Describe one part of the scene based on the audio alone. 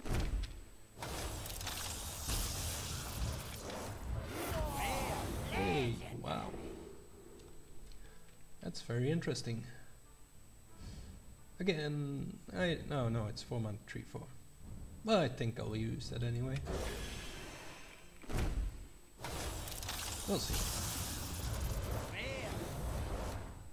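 A card pack bursts open with a bright magical whoosh.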